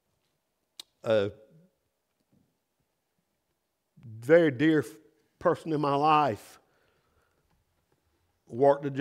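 A middle-aged man speaks slowly and deliberately into a microphone, with long pauses.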